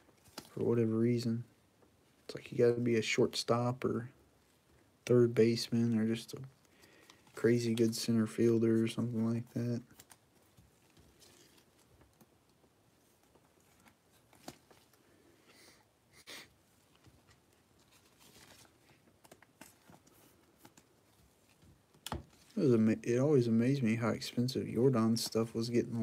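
Trading cards rustle and slide softly as they are handled.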